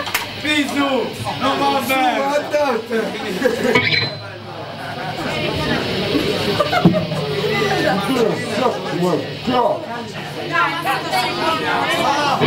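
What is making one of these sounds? Men talk loudly nearby.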